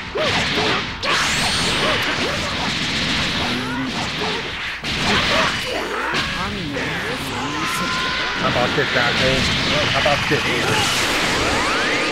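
Energy blasts roar and crackle loudly.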